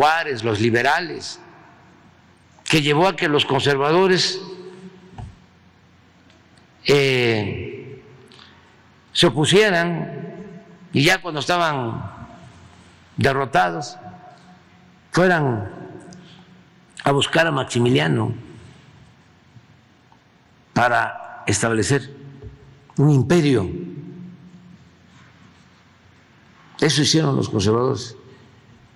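An elderly man speaks calmly and slowly into a microphone, in short phrases with pauses.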